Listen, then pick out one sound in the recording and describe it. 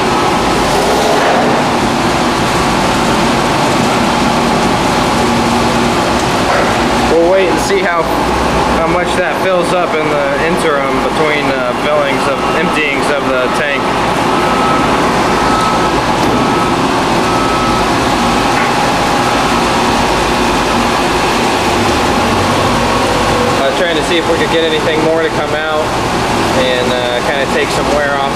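A machine grinds and churns crumbly material with a steady roar.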